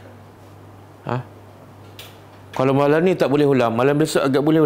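A middle-aged man speaks calmly into a close microphone, as if teaching.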